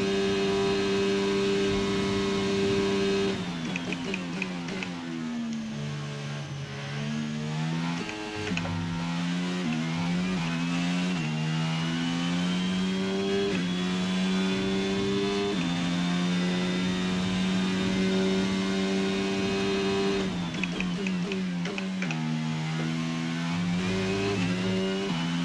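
A racing car's engine screams, rising in pitch through the gears and dropping as it slows.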